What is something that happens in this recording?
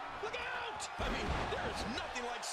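A body slams heavily onto a wrestling mat with a thud.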